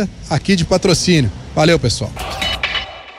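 A middle-aged man speaks with animation into a microphone, close by.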